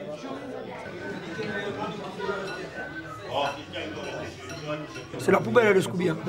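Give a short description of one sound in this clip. People chatter at a busy table.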